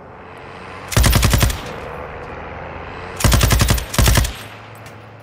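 A machine gun fires loud rapid bursts close by.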